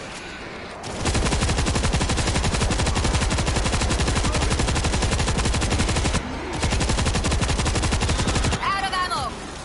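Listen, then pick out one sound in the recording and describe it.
Automatic gunfire rattles rapidly and loudly.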